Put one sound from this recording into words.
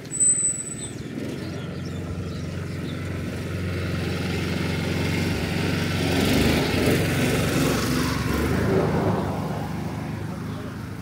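A small motor cart's engine rumbles close by, grows louder and then fades.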